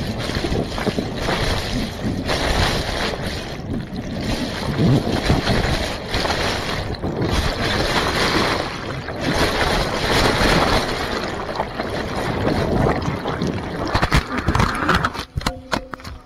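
Water rushes and churns loudly around the microphone.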